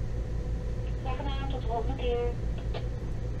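A radio voice answers through a small loudspeaker.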